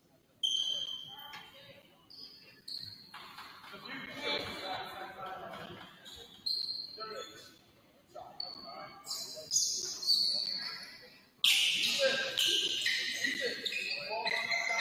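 Sneakers squeak sharply on a hard floor in an echoing gym.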